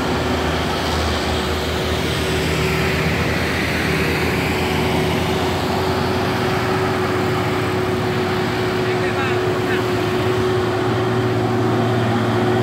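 A heavy truck engine rumbles as it drives past close by.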